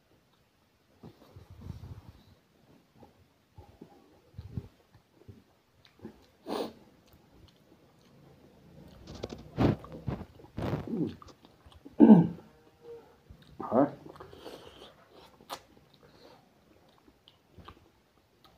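A man chews food loudly and smacks his lips close to a microphone.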